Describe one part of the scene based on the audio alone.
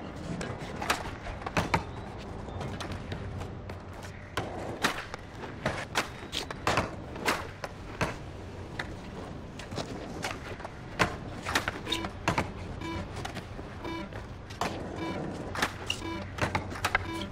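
A skateboard deck clacks and slaps down on landing tricks.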